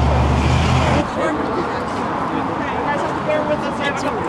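Several people chat outdoors in the distance.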